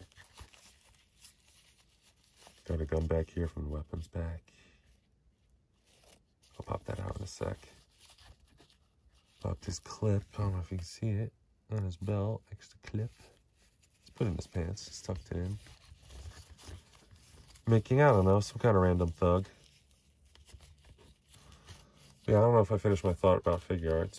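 Fingers softly rustle and click a small plastic figure's cloth suit.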